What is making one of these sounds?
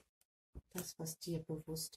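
A playing card is laid down on a table.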